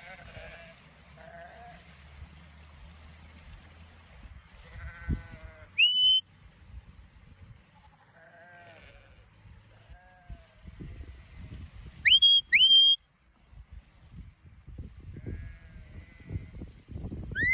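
Sheep bleat across a field.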